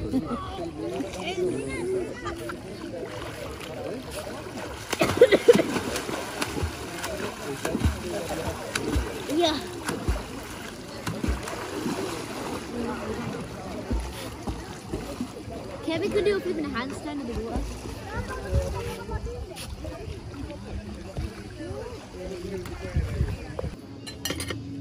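Children talk and laugh excitedly close by.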